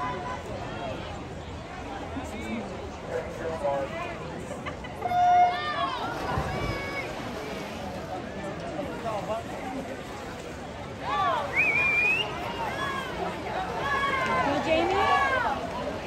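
A crowd of spectators cheers and shouts across the pool, growing louder.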